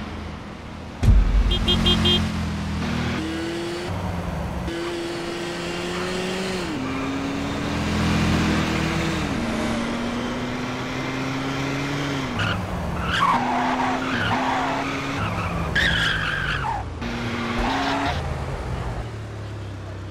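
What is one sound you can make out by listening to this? A car engine revs and roars as it speeds up through the gears.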